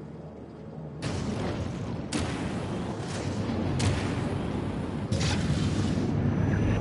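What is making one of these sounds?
A spacecraft engine roars loudly with rushing bursts.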